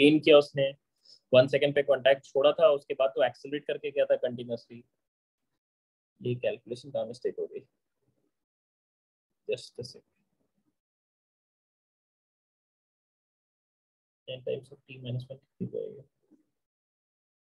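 A young man speaks calmly into a microphone, explaining in short bursts with pauses.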